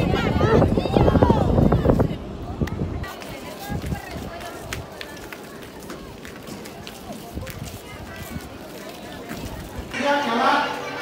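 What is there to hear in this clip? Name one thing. A crowd of children and women chatter and call out close by.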